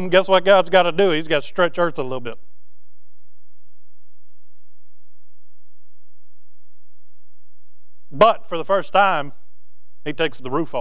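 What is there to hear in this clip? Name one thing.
A man speaks with animation through a microphone and loudspeakers in a large room, pausing now and then.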